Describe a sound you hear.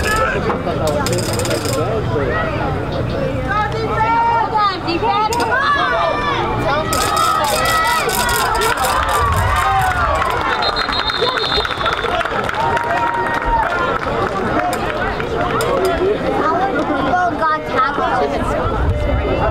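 A crowd of young players and spectators shout and cheer outdoors.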